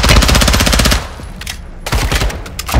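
A gun's magazine clicks and rattles during a reload.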